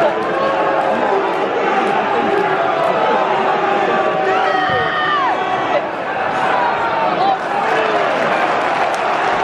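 A large stadium crowd sings and chants loudly all around.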